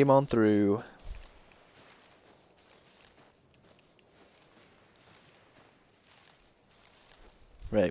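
Leaves rustle and swish as plants are picked by hand.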